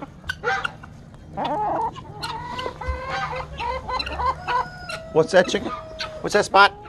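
Several birds squawk, cluck and gobble close by outdoors.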